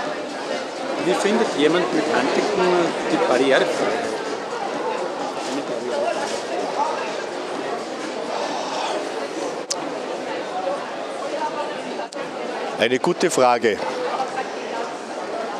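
An elderly man speaks calmly and close into a microphone.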